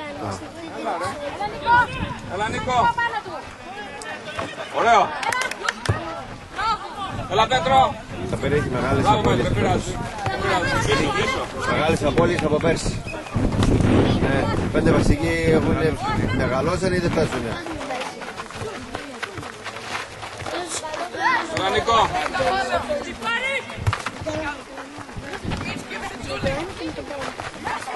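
Young boys shout to each other across an open outdoor pitch.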